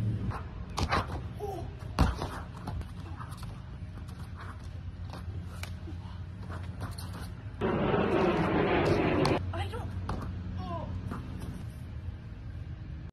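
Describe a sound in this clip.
A young woman exclaims nearby.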